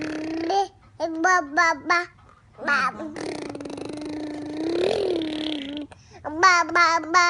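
A baby squeals in short high bursts.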